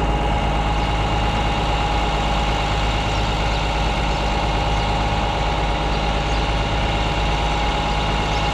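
A tractor engine idles steadily nearby.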